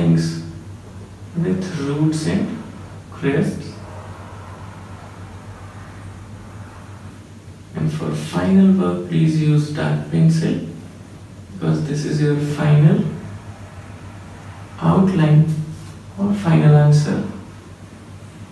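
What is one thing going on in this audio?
A man speaks calmly and clearly, close by, as if teaching.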